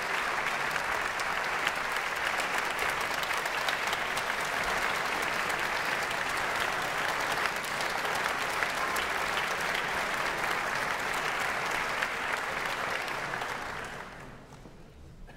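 A large audience applauds in a large hall, then the applause dies away.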